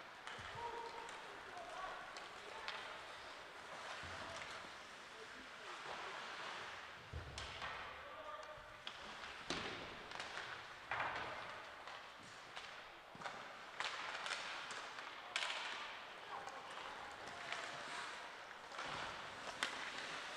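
Skates scrape and hiss across the ice in a large echoing hall.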